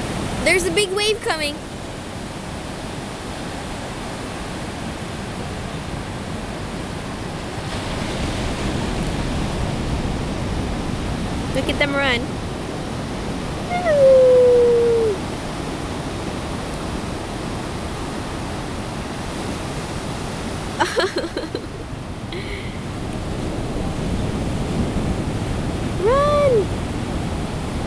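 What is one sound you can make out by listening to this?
Shorebirds call out in short bursts.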